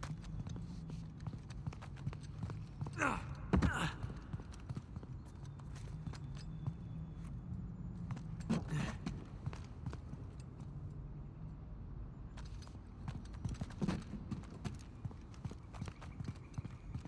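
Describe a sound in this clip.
Footsteps patter across a hard floor.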